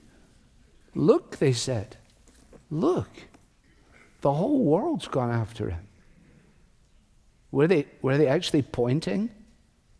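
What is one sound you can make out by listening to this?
An elderly man speaks emphatically through a microphone, in short bursts with pauses.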